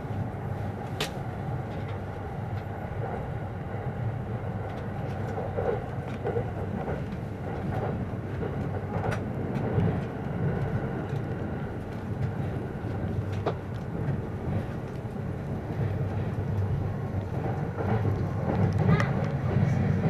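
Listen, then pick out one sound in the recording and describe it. Wheels click over rail joints now and then.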